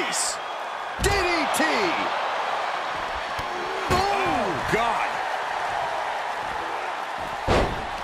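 Heavy bodies slam down with loud thuds.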